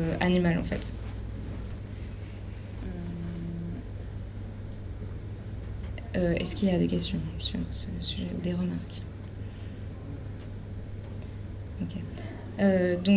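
A young person speaks calmly and haltingly into a microphone, heard close up.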